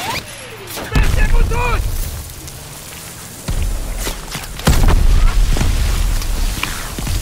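Explosions boom loudly nearby.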